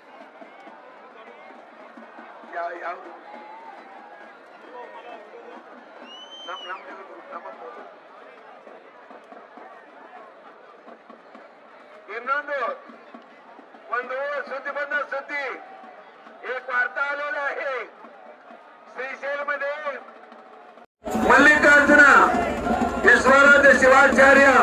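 A large crowd of men chants together outdoors.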